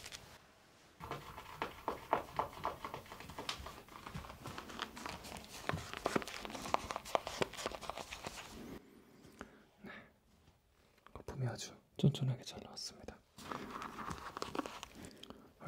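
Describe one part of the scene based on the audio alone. A shaving brush swirls and crackles through lather in a bowl, close up.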